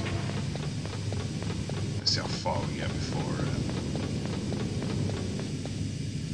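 Footsteps tap steadily on a metal floor.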